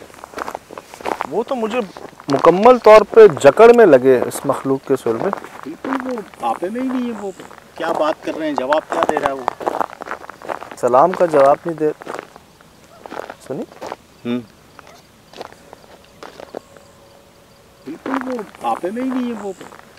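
A man talks with animation close by outdoors.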